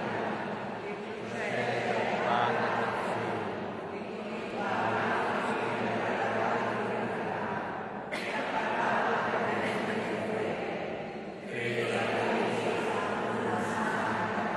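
A woman sings through a loudspeaker in a large echoing hall.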